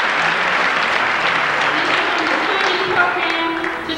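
A young woman speaks into a microphone over a loudspeaker.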